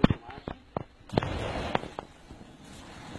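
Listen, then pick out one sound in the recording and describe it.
Flames whoosh from a motorcycle exhaust.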